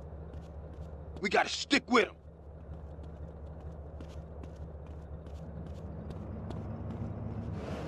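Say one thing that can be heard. Footsteps thud quickly as a man runs.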